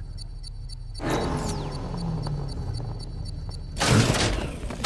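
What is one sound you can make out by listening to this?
A car engine rumbles and roars.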